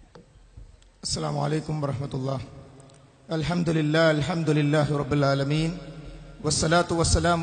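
A man speaks with animation into a microphone through a loudspeaker.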